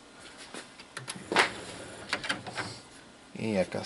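A disc clatters softly as it is set into a player's tray.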